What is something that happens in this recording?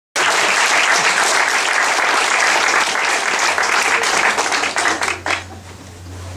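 An audience applauds loudly in an echoing hall.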